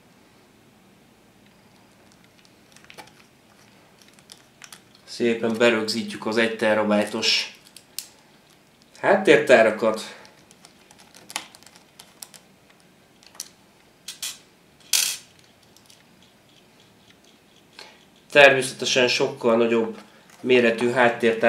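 A screwdriver scrapes and clicks against small metal screws.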